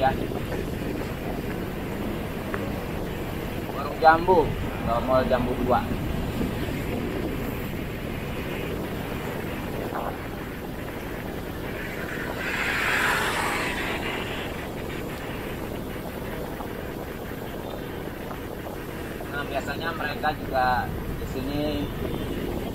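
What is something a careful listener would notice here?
Traffic rumbles steadily along a city street outdoors.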